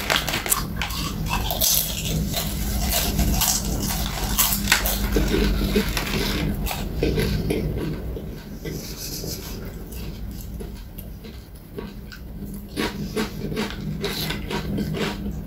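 A man crunches loudly on crisps close by.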